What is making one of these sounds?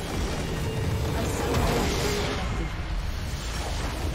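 A large crystal shatters with a booming explosion.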